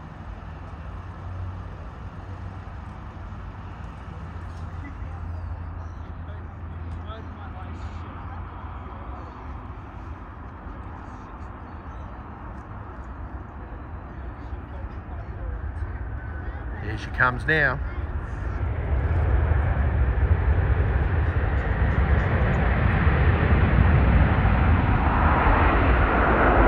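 A jet engine roars steadily as an airliner rolls along a runway, growing louder.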